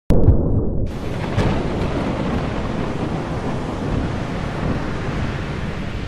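Rough sea waves churn and roar.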